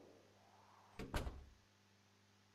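A door opens with a clunk.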